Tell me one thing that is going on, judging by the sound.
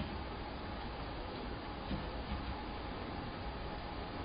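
A plate is set down softly on a hard counter.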